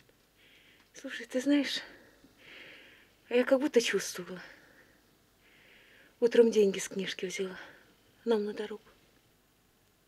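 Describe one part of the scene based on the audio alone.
A woman speaks softly and close by, with pauses.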